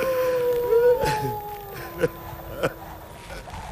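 A man sobs and gasps close by.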